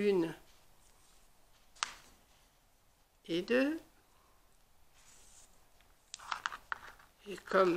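An elderly woman speaks briefly and calmly nearby.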